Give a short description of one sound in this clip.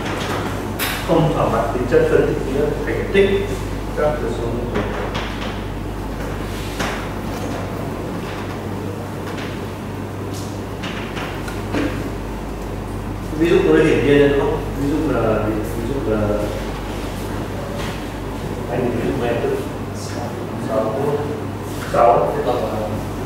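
A man lectures in a calm voice.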